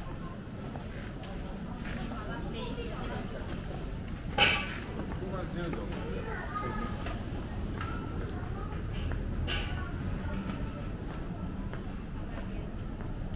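A crowd of people murmurs in the distance.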